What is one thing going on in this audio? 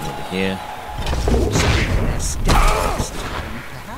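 Armoured players crash together in a heavy tackle.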